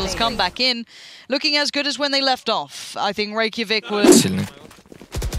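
A young man shouts excitedly into a headset microphone.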